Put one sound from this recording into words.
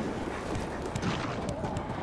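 Sparks crackle and fizz.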